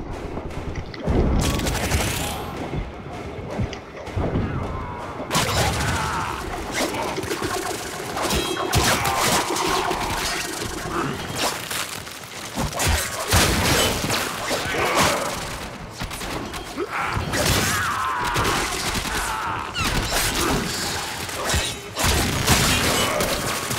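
Guns fire in quick, loud bursts.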